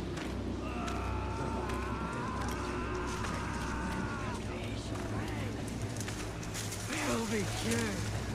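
Tall grass rustles and swishes as someone walks through it.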